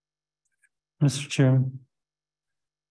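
A woman speaks briefly into a microphone.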